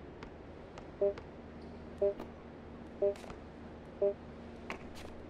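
A shot clock beeps four times as it counts down.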